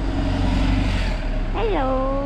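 A bus engine rumbles close by as the bus drives past.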